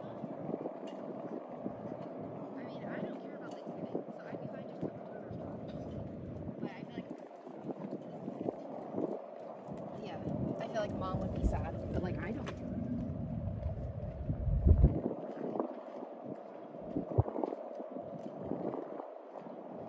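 Outdoors, a light wind rumbles steadily.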